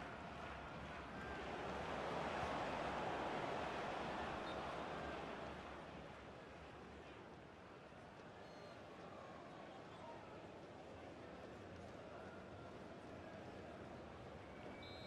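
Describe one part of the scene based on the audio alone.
A large crowd roars in a stadium, swelling loudly and then settling into a steady murmur.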